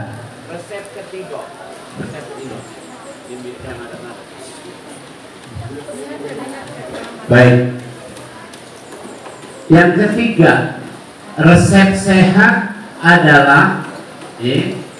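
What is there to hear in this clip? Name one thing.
A middle-aged man speaks through a microphone, with pauses, in an echoing room.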